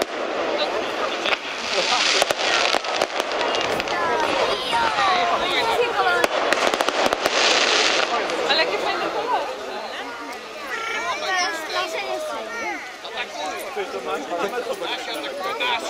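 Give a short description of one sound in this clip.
A crowd of men and women talk and cheer nearby.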